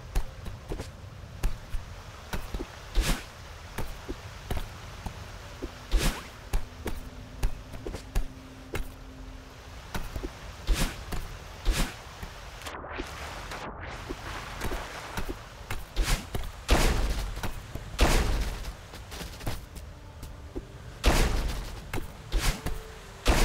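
Short electronic whooshes and thumps from a video game sound in quick succession.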